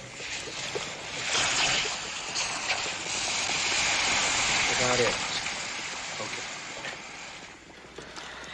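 Molten metal hisses and sizzles as it pours, with steam rushing.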